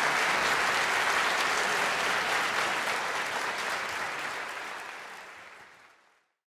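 An audience applauds in a large hall, then the applause fades away.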